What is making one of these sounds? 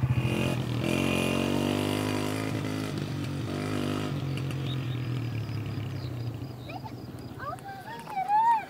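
A motorcycle engine runs and putters along.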